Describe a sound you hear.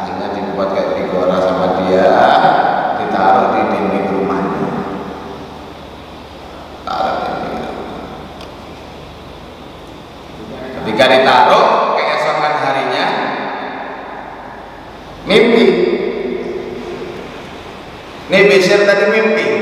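A man preaches with passion into a microphone, his voice echoing through a large hall.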